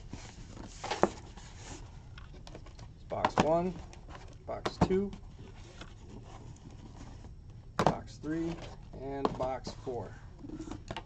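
Boxes knock against one another as they are set down.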